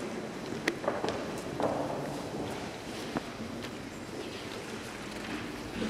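A harp plays softly.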